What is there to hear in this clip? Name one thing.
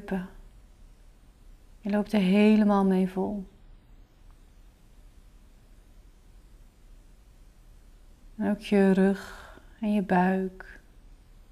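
A young woman sings softly and calmly, close by, with long held notes.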